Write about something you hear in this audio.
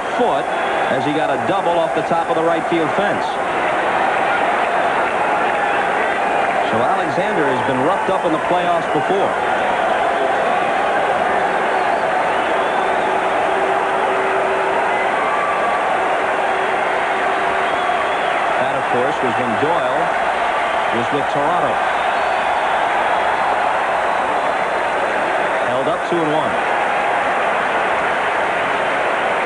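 A large crowd murmurs and cheers steadily in a big stadium.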